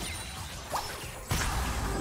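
A spell whooshes with a loud burst.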